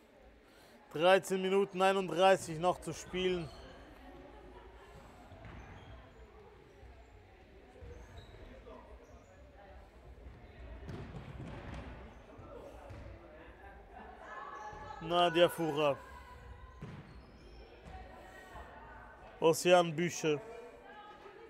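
Shoes squeak sharply on a wooden court.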